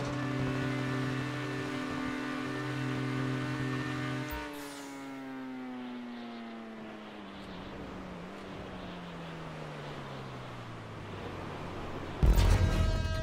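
A car engine roars steadily, then its pitch slowly falls away.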